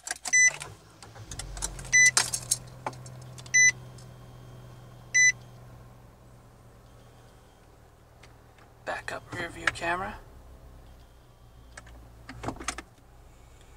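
A car engine starts and idles with a low, steady hum.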